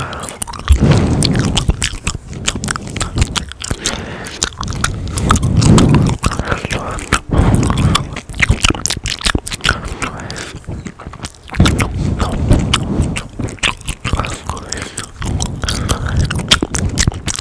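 A young man whispers softly and closely into a microphone.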